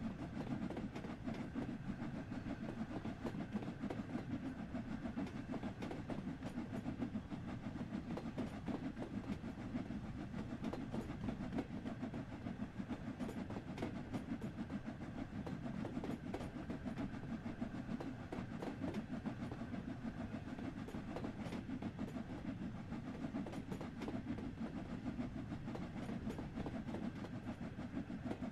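A steam train rumbles steadily along the track.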